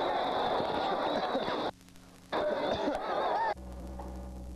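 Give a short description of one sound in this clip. A large crowd roars and cheers loudly.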